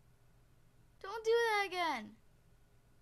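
A young girl makes a long wavering vocal sound.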